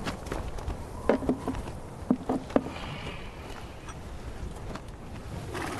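Cloth rustles as a man unwraps a bundle.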